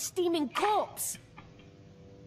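A young woman speaks angrily, close by.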